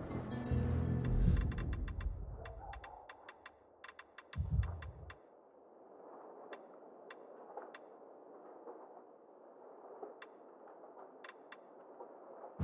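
Short menu clicks tick in quick bursts, then now and then.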